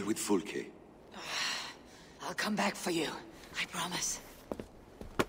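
A young woman speaks softly and earnestly, close by.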